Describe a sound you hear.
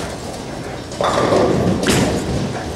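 A bowling ball thuds onto a lane and rolls away.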